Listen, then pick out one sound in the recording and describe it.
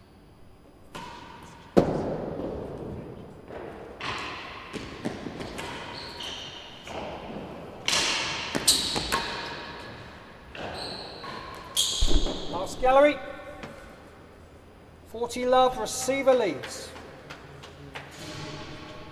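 A ball is struck hard with a racket and smacks off the walls, echoing loudly around a large hall.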